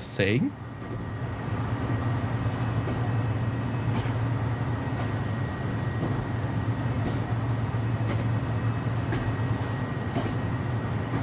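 Train wheels click over rail joints now and then.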